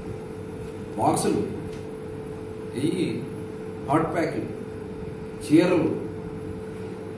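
A middle-aged man speaks calmly into nearby microphones in short phrases.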